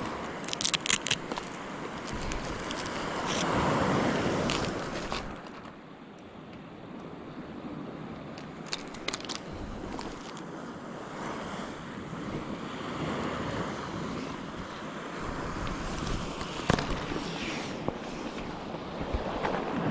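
Pebbles crunch and clatter as a man shifts his weight.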